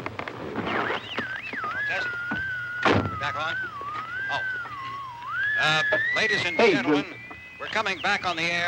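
A car radio whistles and warbles as it is tuned between stations.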